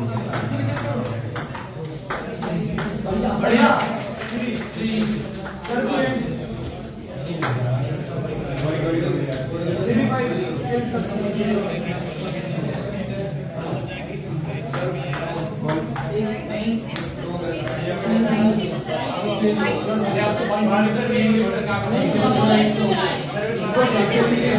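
Young men and women chatter and talk in an echoing room.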